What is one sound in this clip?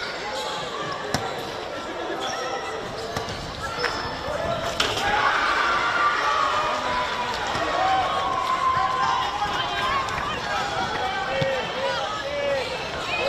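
Young women shout to each other across an open field outdoors.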